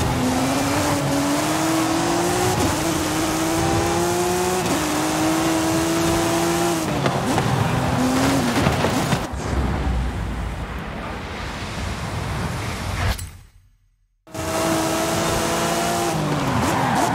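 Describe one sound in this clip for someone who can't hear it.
A race car engine roars and climbs through the gears.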